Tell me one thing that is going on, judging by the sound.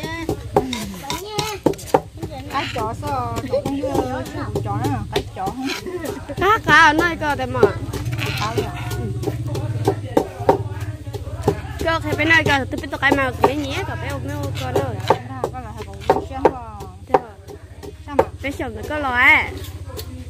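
Women talk nearby with animation.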